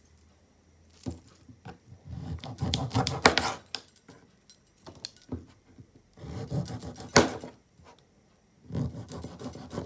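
A knife slices through a juicy lemon.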